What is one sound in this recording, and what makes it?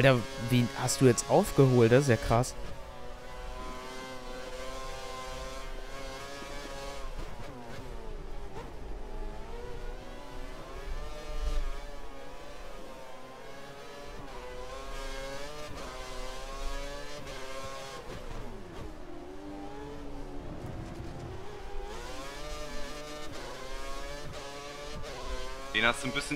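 A racing car engine screams, rising and dropping in pitch as it shifts gears.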